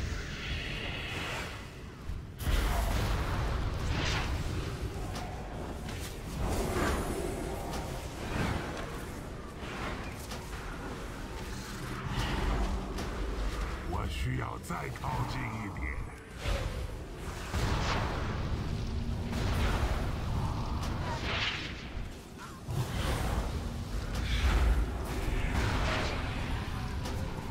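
Spell effects and weapon hits crackle and boom during a fight.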